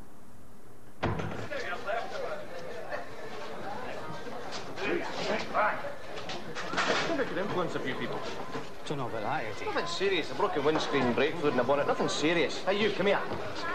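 A crowd of men and women chatter loudly.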